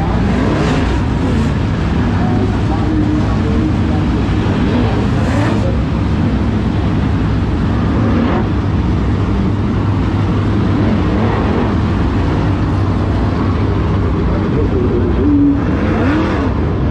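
Engines rev up and down as cars pass.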